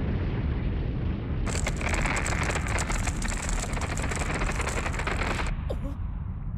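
A deep-voiced man laughs menacingly.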